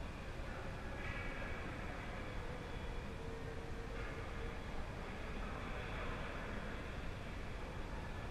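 Skates scrape on ice in a large echoing rink.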